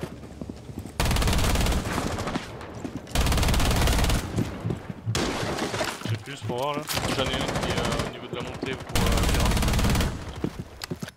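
A submachine gun fires rapid bursts at close range.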